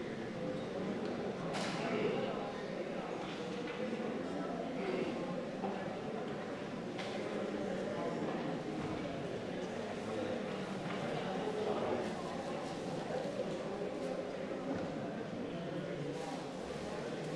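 Many people murmur and chat quietly in an echoing room.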